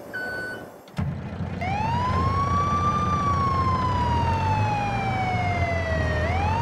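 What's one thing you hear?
A siren wails loudly, rising and falling slowly.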